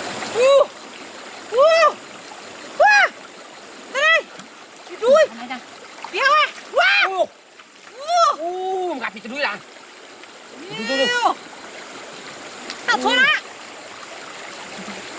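A shallow stream babbles and trickles over rocks nearby.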